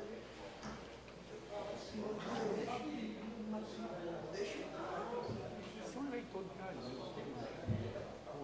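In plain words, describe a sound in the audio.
A man speaks calmly through a microphone in a slightly echoing room.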